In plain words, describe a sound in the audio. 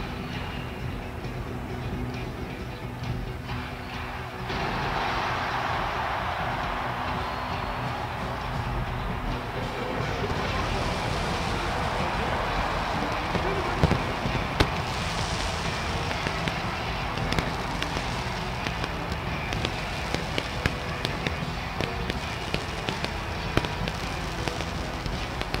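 A marching band plays brass and drums.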